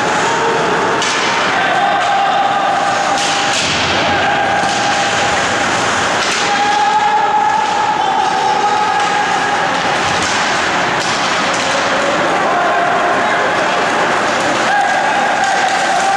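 Hockey sticks clack against a puck and against each other.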